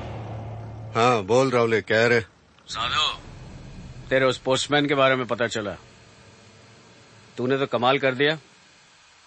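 A middle-aged man speaks calmly and slowly, close by.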